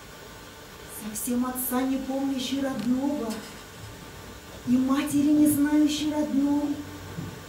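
A woman sings in a slow, wavering voice in a large echoing hall.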